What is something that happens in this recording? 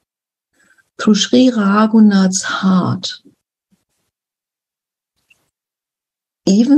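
An elderly woman speaks calmly over an online call.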